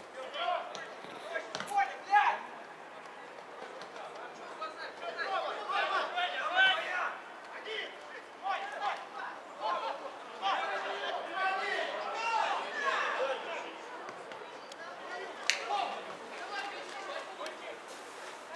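Young men shout and call to each other across an open field, heard from a distance.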